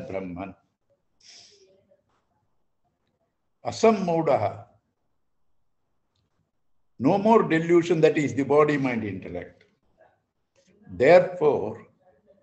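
An elderly man speaks calmly in short phrases over an online call.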